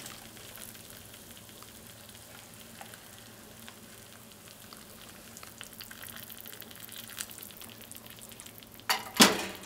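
Hot water pours steadily into a plastic cup.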